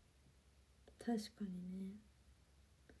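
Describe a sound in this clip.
A young woman speaks softly and briefly, close by.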